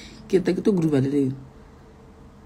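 A young woman speaks casually, close to a microphone.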